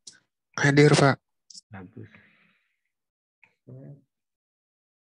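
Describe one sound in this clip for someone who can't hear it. A man speaks briefly over an online call, in short bursts.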